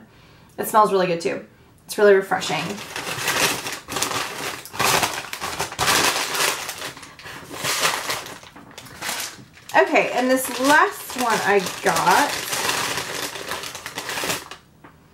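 A young woman talks close by in a lively, chatty way.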